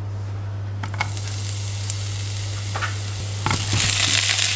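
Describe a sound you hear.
Ginger sizzles in hot oil in a pan.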